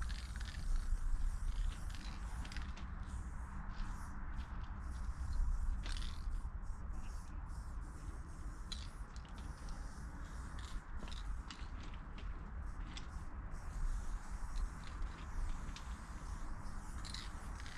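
A spray can hisses.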